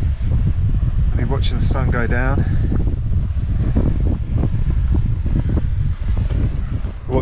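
Wind blows hard and rumbles against the microphone outdoors.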